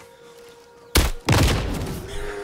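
A crossbow fires with a sharp snap.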